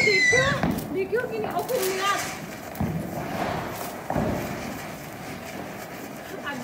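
A small firework fizzes and sputters on the ground outdoors.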